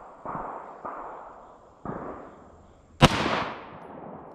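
Rifle shots bang loudly outdoors, echoing off into the distance.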